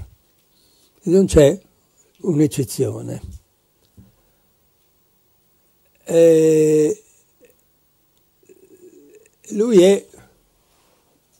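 An elderly man speaks calmly through a microphone, in short phrases with pauses.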